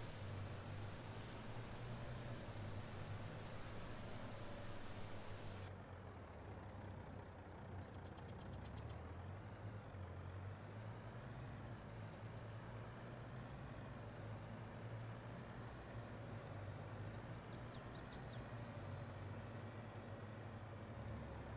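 Tyres crunch on a gravel road.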